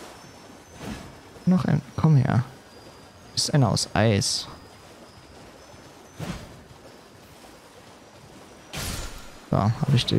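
A horse gallops through shallow water, its hooves splashing.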